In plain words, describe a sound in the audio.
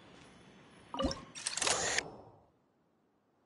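A sudden loud whoosh sweeps past and cuts off.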